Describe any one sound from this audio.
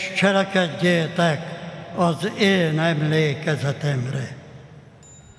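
An elderly man chants through a microphone in a large echoing church.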